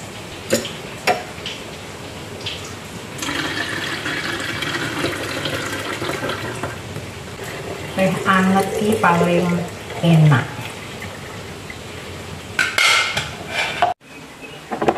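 Pots and pans clank as they are handled.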